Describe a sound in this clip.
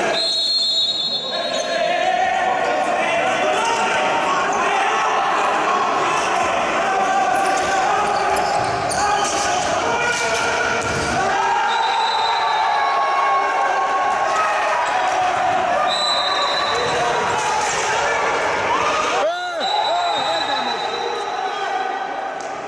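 A crowd of spectators shouts in an echoing indoor hall.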